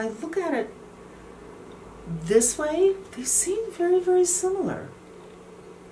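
A middle-aged woman speaks close by, with animation.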